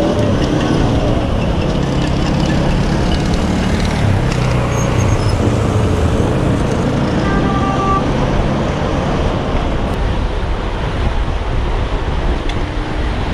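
Wind rushes loudly past a moving cyclist.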